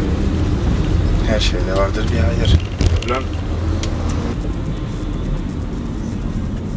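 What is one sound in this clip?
A van engine hums steadily with road rumble.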